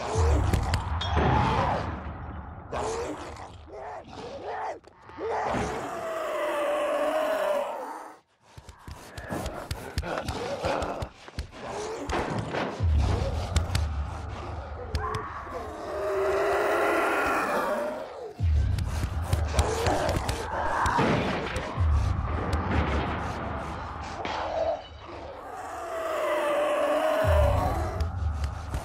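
Footsteps thud and scuff on hard ground.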